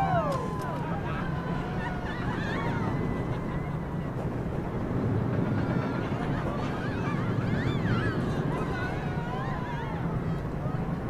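A roller coaster train rumbles and rattles steadily along its track.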